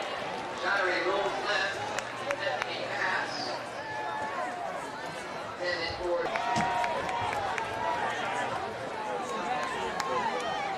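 Men shout from the sideline.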